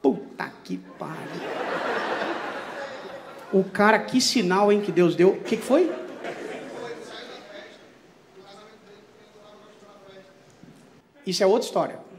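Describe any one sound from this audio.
An audience laughs in a large room.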